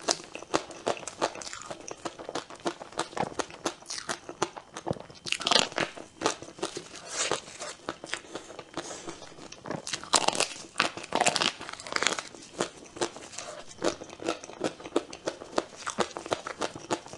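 A young woman chews soft, sticky cake wetly and loudly close to a microphone.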